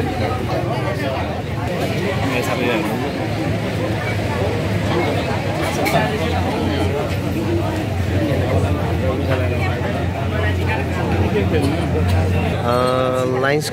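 A crowd of young people chatters and murmurs outdoors.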